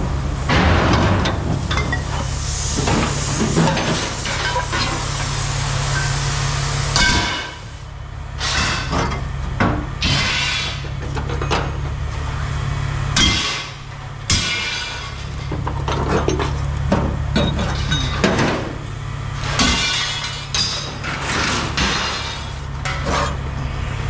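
Metal scraps clatter and clank as they are handled.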